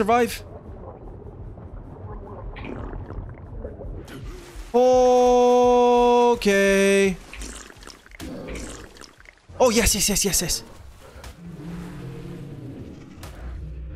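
A man talks calmly into a microphone close by.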